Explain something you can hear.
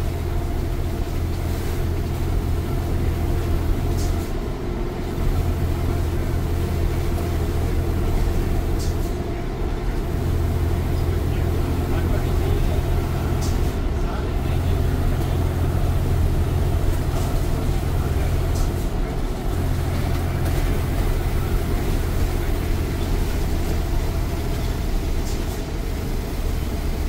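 The bus body rattles and hums as it rolls along the road.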